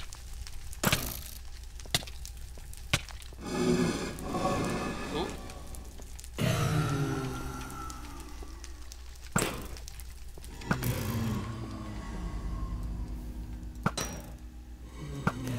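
Stone blocks crack and break with sharp knocks.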